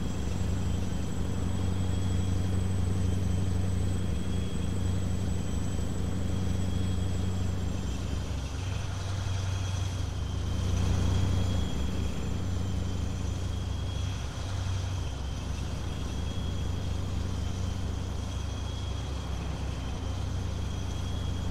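Tyres roll on a highway.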